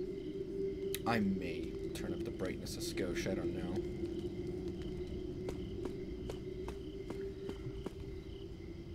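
Footsteps tread on stone.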